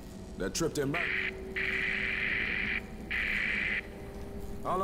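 A radio hisses with bursts of static.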